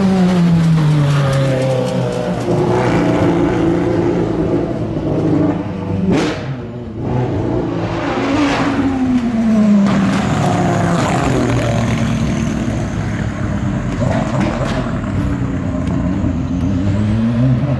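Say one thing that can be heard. A racing car engine roars loudly, revving up and down as it speeds past close by.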